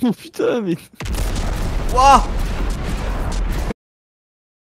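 A fiery explosion bursts with a loud roar and crackle.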